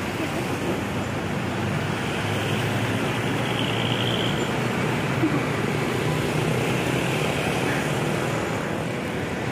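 Road traffic rumbles steadily nearby.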